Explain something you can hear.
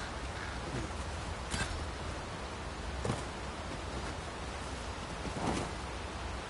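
Footsteps thud on grassy ground.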